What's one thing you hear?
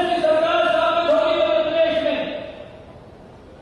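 A man speaks forcefully into a microphone over a loudspeaker, his voice ringing out.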